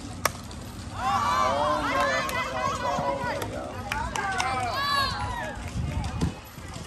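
Young women cheer and shout excitedly outdoors.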